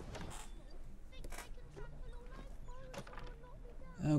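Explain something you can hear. Leaves rustle as someone pushes through a bush.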